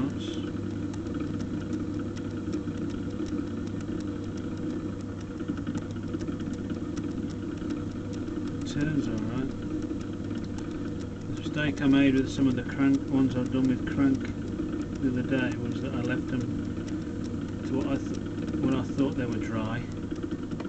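A metal trimming tool scrapes against clay.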